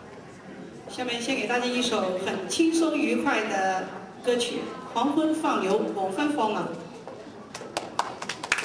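A young woman speaks into a microphone over loudspeakers in a large hall.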